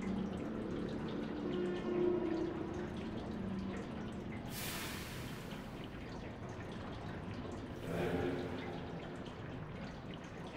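A heavy wooden beam scrapes across a stone floor.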